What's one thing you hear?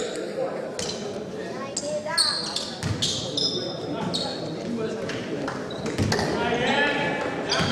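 Basketball players' sneakers squeak on a wooden court in an echoing gym.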